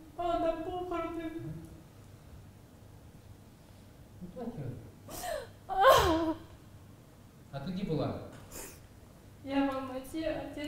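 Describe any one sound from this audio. A young woman speaks tearfully into a microphone, her voice breaking.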